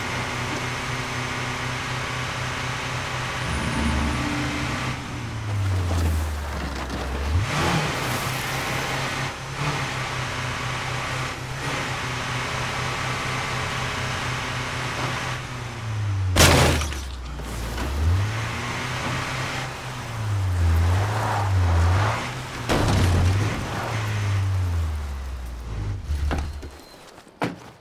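A vehicle's engine hums and revs as it drives along.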